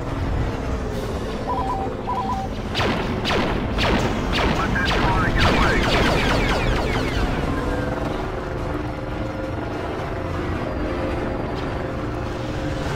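A spaceship engine roars steadily.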